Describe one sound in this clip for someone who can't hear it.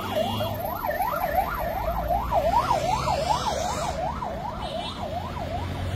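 Cars and motorcycles drive past on a road.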